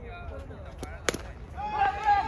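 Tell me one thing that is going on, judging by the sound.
A cricket bat hits a ball with a sharp crack.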